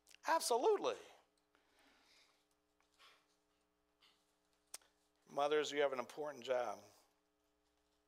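A middle-aged man speaks calmly and expressively through a microphone.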